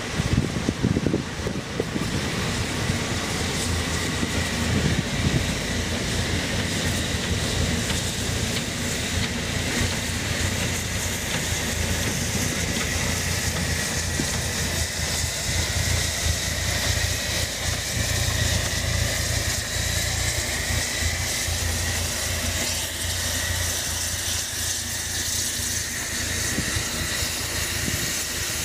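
A steam locomotive chuffs steadily as it approaches and passes close by.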